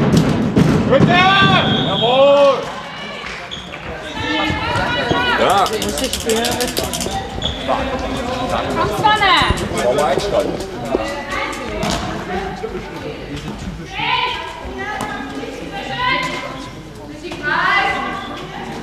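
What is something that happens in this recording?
Sports shoes squeak on a sports hall floor in a large echoing hall.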